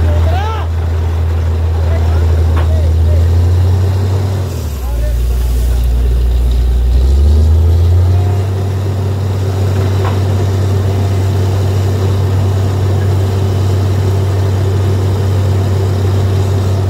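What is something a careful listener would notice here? A diesel engine of a drilling rig drones loudly and steadily.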